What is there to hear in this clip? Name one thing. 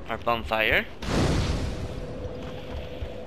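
A fire flares up with a sudden whoosh.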